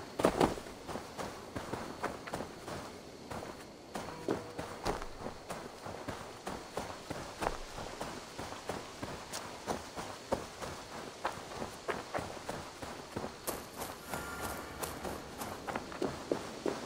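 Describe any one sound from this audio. Footsteps crunch steadily through grass and leaves.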